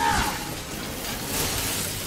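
A chainsaw blade grinds against metal.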